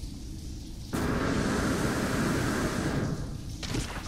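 A jetpack roars in a short burst of thrust.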